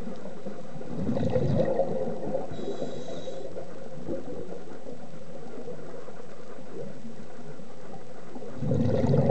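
A muffled underwater murmur goes on throughout.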